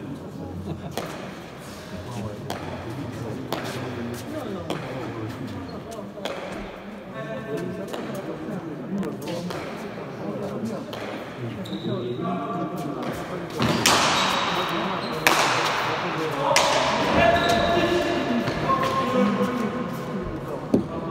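A ball smacks hard against a wall and floor, echoing in a large hall.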